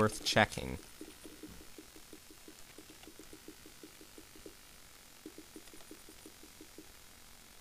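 Quick, soft game footsteps patter in an even rhythm.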